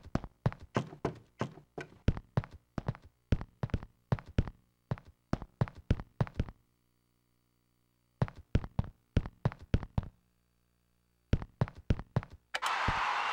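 Video game footsteps patter across a wooden floor.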